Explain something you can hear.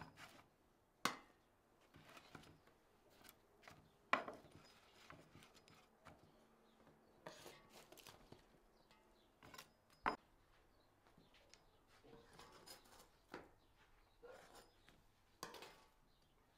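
Metal tongs click against pastries on a wooden board.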